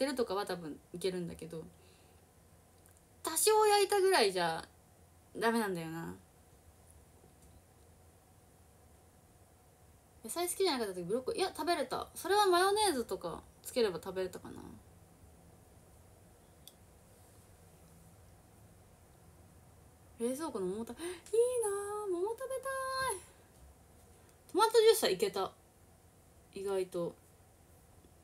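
A young woman speaks casually and close by, in short bursts with pauses.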